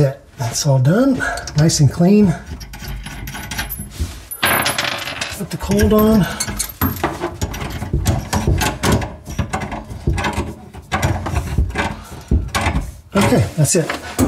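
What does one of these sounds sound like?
Pliers click and scrape against a plastic pipe nut.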